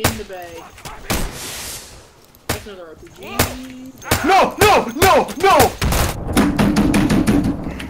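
Rifle shots crack out, one after another, with short gaps between them.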